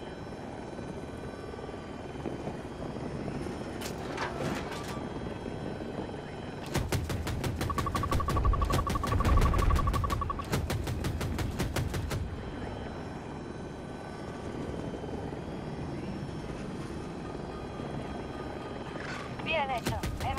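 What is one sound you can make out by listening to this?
A helicopter's rotor drones steadily.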